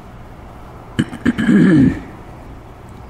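An elderly man coughs into his hand.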